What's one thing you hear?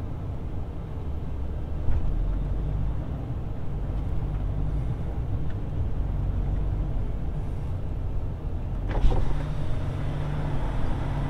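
Wind rumbles steadily across open ground.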